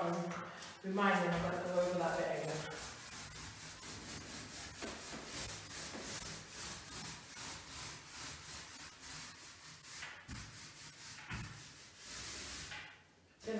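A paint roller rolls and swishes back and forth across a wall.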